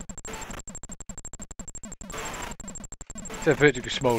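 Rapid electronic gunfire rattles from a retro video game.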